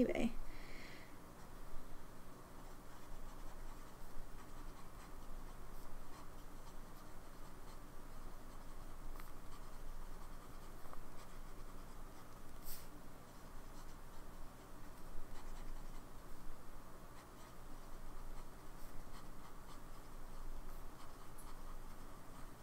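A fountain pen nib scratches softly across paper.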